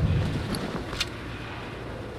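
A crossbow bolt strikes with a sharp thud.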